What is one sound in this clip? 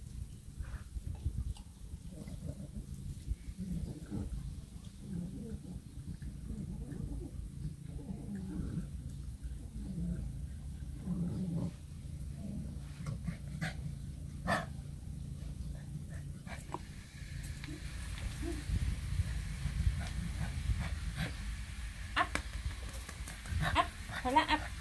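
A puppy's paws shuffle and scrape over loose pebbles.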